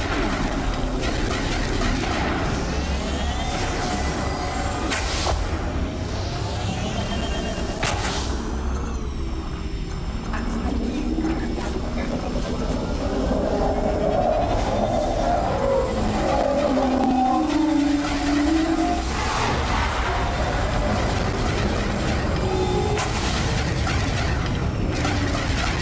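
Laser cannons fire in rapid, crackling bursts.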